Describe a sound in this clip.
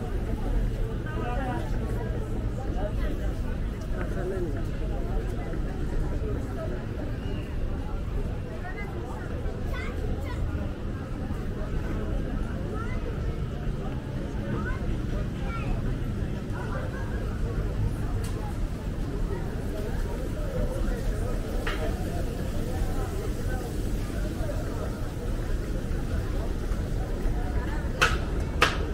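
Footsteps scuff on cobblestones nearby.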